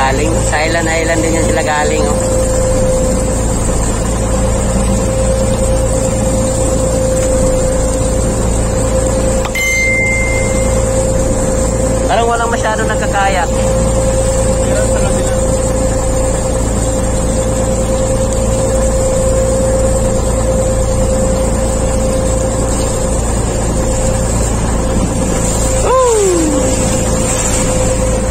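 A boat engine hums steadily close by.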